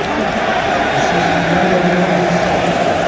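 A crowd of fans sings together loudly.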